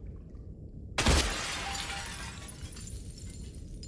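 A gunshot bangs loudly and rings out.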